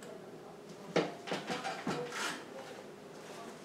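A chair creaks and knocks as an elderly man gets up.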